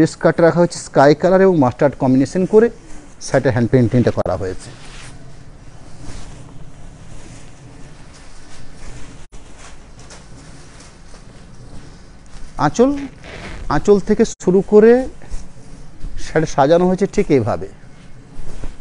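A man speaks up close with animation.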